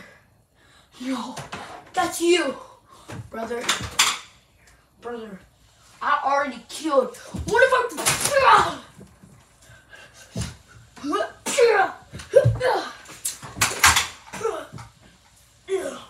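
A young boy talks and shouts excitedly close by.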